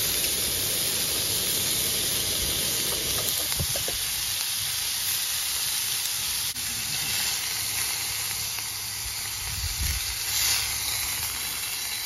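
Meat sizzles loudly in a hot frying pan.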